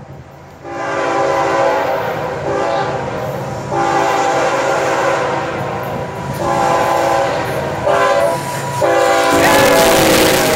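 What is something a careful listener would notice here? A train horn blares in long repeated blasts.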